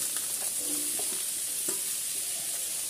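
Vegetable pieces are scraped from a steel bowl into a metal wok with a clink.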